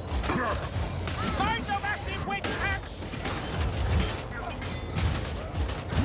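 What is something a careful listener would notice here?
Heavy weapons clash and thud in a fight.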